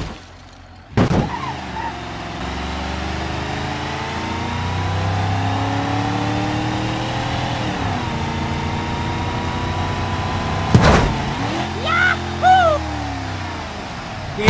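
A pickup truck engine drones steadily as it drives along.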